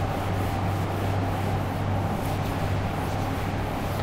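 A board eraser rubs across a board.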